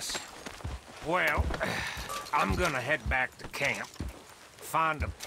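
A man speaks calmly in a deep, gravelly voice.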